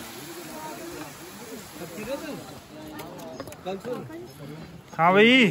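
Several men chatter quietly in the background.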